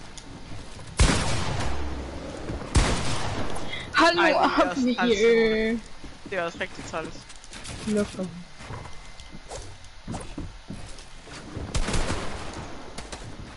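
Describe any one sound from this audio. Gunshots bang loudly in a video game.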